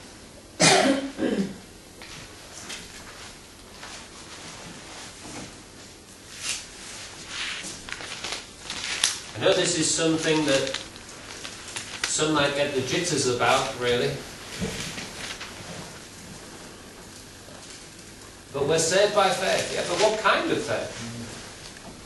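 A middle-aged man speaks through a microphone, with pauses between phrases.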